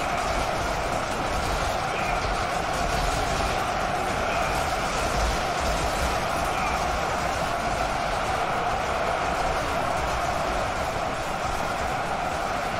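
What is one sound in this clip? A massive battle of thousands of fighters rumbles with a dense, unbroken clatter of clashing weapons.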